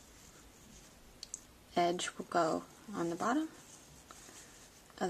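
Fabric rustles softly in someone's hands.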